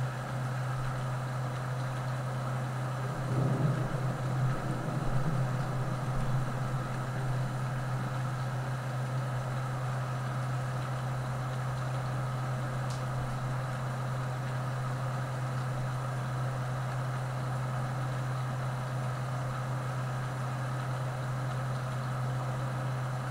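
Crops rattle and tumble along a harvester's conveyor into a trailer.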